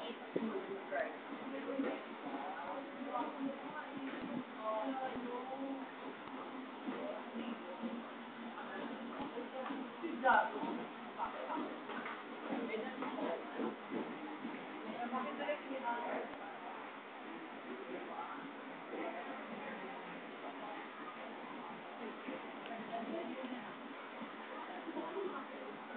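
Many women and men chatter at once throughout.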